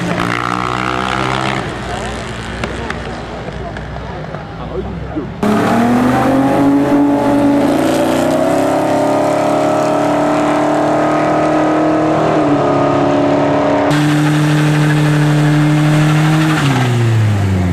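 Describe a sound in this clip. A car engine roars at high revs close by.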